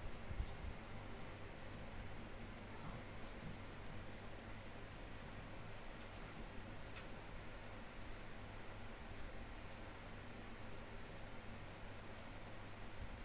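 An electric fan hums steadily.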